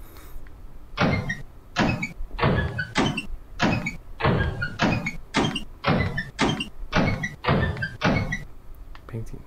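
Metal locker doors creak and clank as they swing open and shut.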